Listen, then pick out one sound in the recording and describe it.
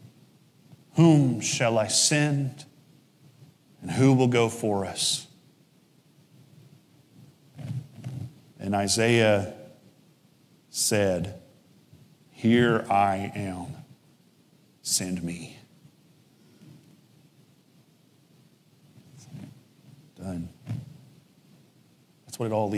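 A man speaks calmly through a microphone in a large echoing room, with pauses between phrases.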